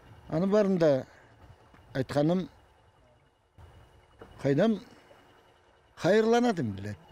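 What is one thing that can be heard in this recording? An elderly man speaks calmly into a microphone close by, in short phrases with pauses.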